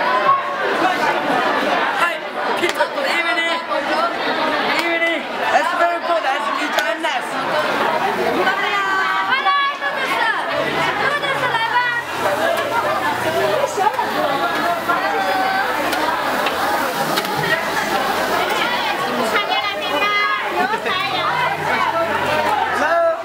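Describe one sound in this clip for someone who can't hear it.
A crowd murmurs all around.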